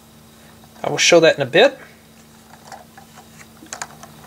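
Plastic toy parts click and rattle softly as they are handled.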